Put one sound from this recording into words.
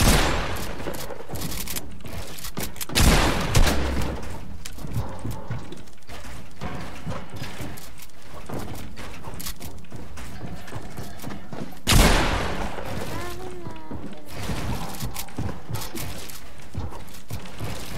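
Keyboard keys clack rapidly.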